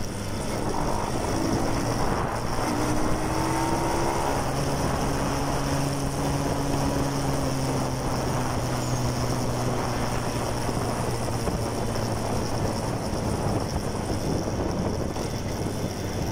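Wind rushes loudly past a helmet.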